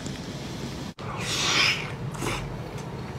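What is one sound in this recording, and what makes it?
A fizzy drink pours and foams in a glass.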